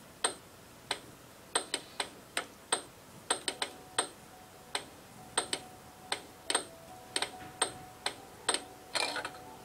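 A puck clacks sharply against the walls and paddles of an air hockey table, again and again.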